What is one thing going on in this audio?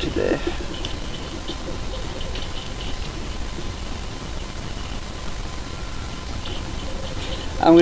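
A small screwdriver turns a screw.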